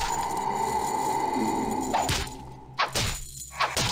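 A sword swings and clashes with metal.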